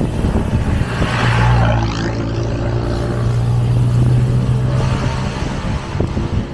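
A car engine hums as the car drives past close by.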